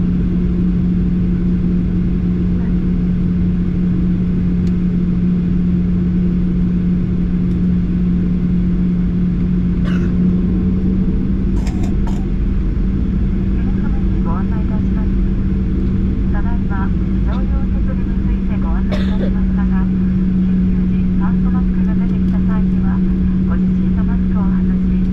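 A jet engine roars steadily close by with a low hum.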